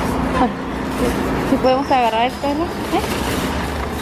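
Metal shopping carts rattle as they are pushed.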